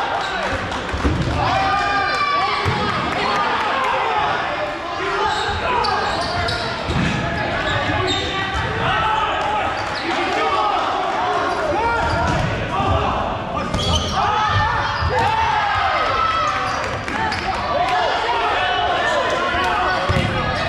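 Young men shout and call out to each other across a large echoing hall.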